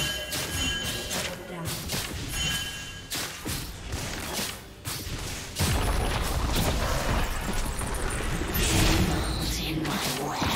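Game characters clash with sharp hits.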